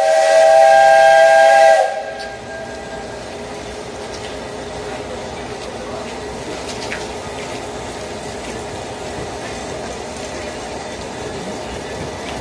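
A steam locomotive chuffs slowly nearby.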